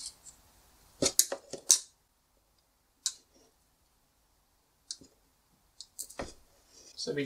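Pliers snip and click against wire.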